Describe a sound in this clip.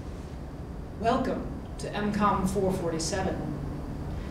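A woman speaks calmly to a room.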